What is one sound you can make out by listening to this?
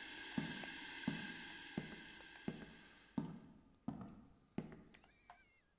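Footsteps fall steadily on a hard floor.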